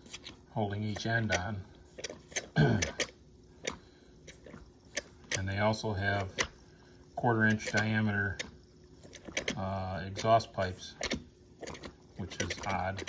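Metal parts of a small machine click as a lever is worked.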